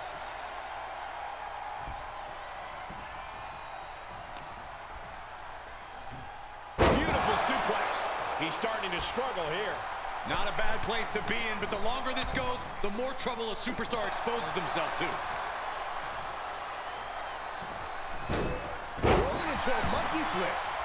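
A large crowd cheers loudly in an arena.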